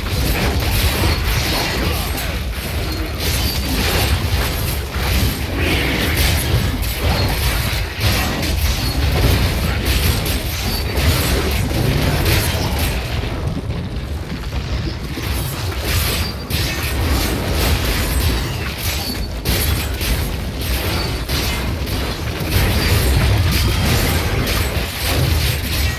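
Monsters snarl and growl as they are hit.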